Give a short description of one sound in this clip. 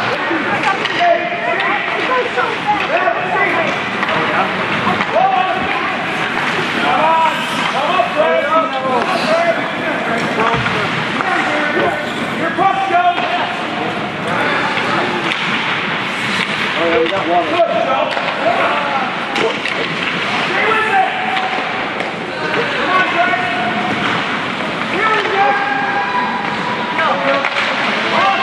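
Young men shout and call out to each other across an echoing rink.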